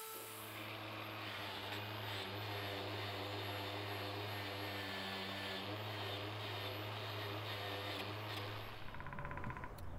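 A power drill whirs steadily.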